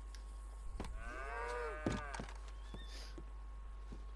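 Boots thud on wooden boards.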